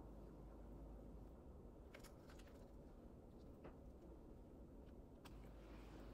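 A knife scrapes butter onto crusty bread.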